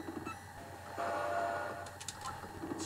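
A video game plays short electronic beeping tones.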